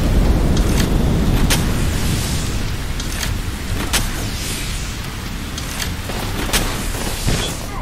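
Sparks crackle and hiss steadily.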